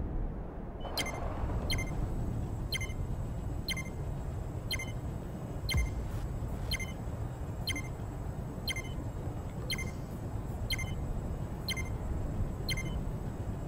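A game's countdown beeps at a steady pace.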